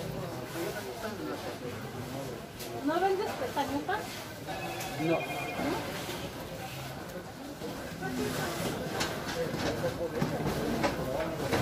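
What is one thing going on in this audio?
Many voices murmur in a busy indoor market.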